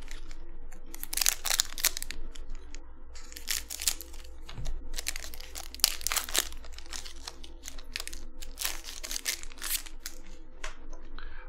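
A foil card pack crinkles and tears as hands open it.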